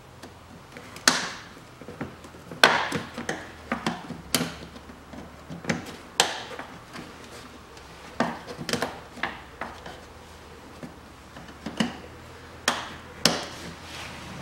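Plastic clips snap and click as hands pry at a car's engine cover.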